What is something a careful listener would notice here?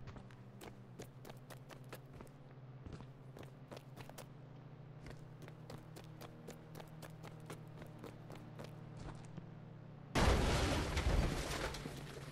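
A character's footsteps run in a video game.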